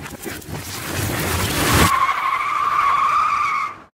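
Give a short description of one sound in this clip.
A car drives along a street.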